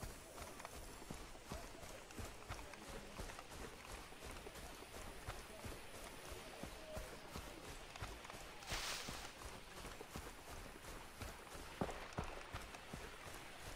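Footsteps thud steadily on grass and dirt.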